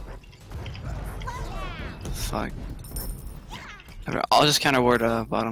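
Magic spells whoosh and crackle in a fantasy battle.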